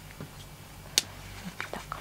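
A snap fastener clicks shut.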